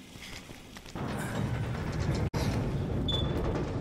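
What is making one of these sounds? A metal roller shutter rattles and rumbles as it is hauled up.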